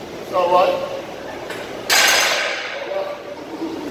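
A barbell clanks onto a rack.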